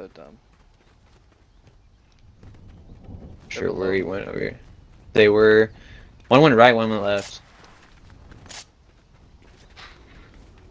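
Footsteps patter quickly over dirt and grass.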